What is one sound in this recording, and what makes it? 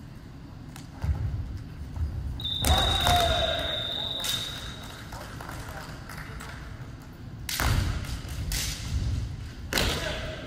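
Kendo fencers shout loudly in an echoing hall.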